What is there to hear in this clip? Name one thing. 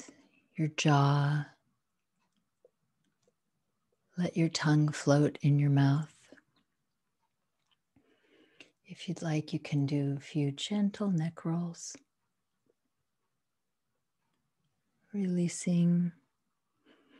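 A woman speaks with animation over an online call, pausing between phrases.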